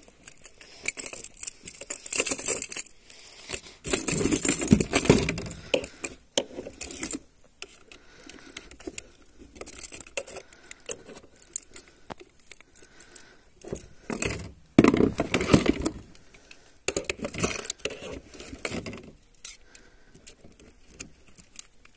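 Metal pliers click and scrape as a hook is worked loose from a fish.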